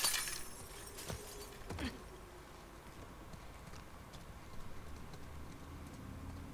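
Footsteps crunch over broken glass and debris.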